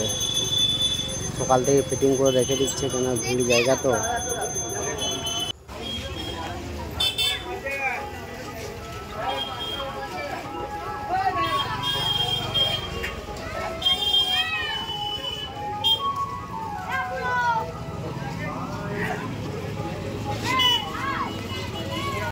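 A crowd chatters in a busy street outdoors.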